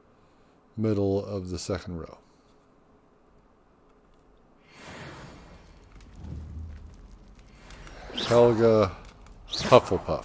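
A man talks casually and with animation close to a microphone.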